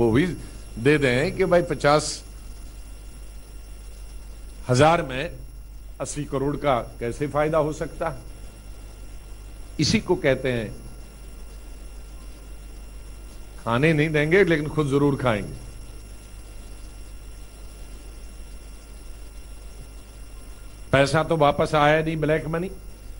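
A man speaks through a microphone, in short bursts with pauses.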